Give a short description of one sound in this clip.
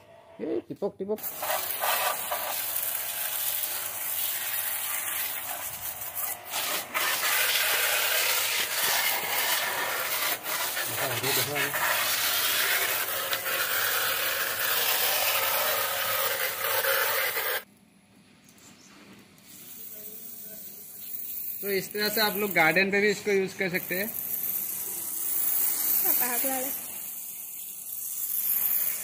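A pressure washer sprays water with a loud, steady hiss.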